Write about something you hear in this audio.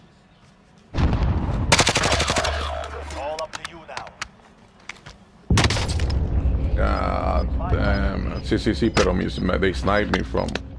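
Gunfire rattles in loud bursts.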